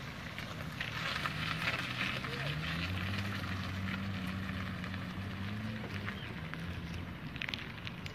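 A small car engine hums as the car pulls away slowly.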